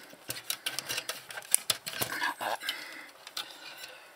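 Plastic parts click and rattle as hands handle them.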